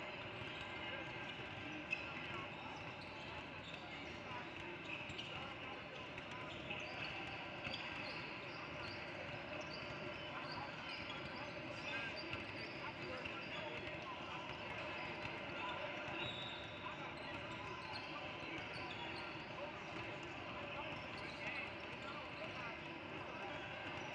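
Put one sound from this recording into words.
Basketballs bounce on a wooden court.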